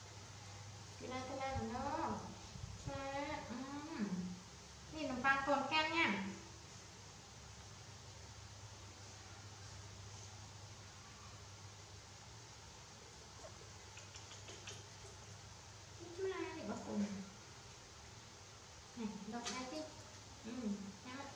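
A woman talks softly nearby in short bursts.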